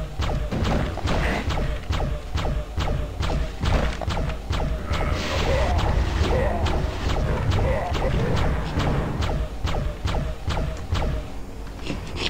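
Magic shots fire in a rapid, steady rhythm.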